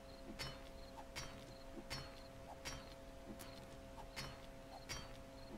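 A pickaxe strikes stone again and again at a steady pace.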